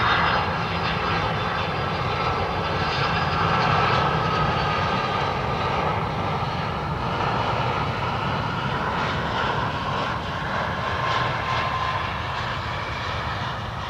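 A jet airliner's engines whine and roar loudly close by.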